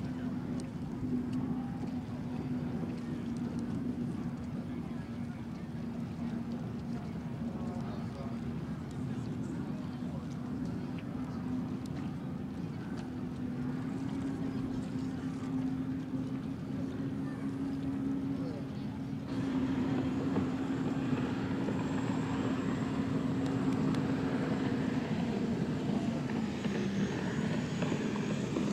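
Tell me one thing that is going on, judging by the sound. A racing boat engine roars steadily at high speed.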